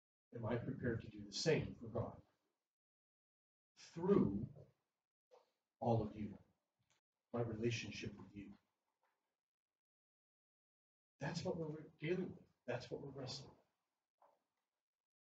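A man speaks calmly into a microphone in an echoing hall, pausing between phrases.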